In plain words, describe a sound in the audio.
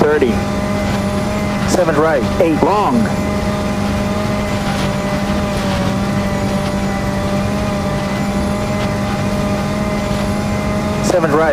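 A rally car engine roars steadily at high speed.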